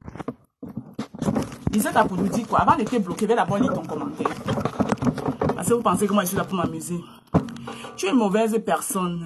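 A woman speaks close to a phone microphone with animation.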